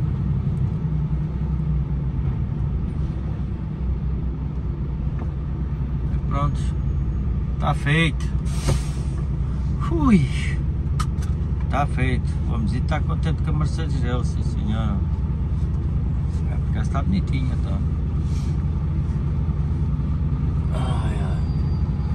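A vehicle's engine rumbles steadily close by.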